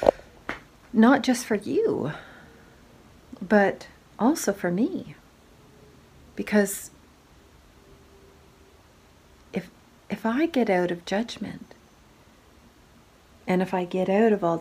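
A middle-aged woman talks close by, with feeling, in short bursts.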